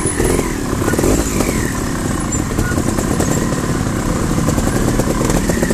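A dirt bike engine putters and revs close by.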